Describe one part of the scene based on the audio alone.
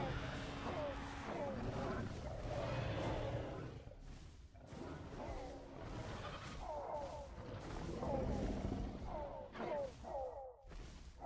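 Dinosaurs growl and snarl.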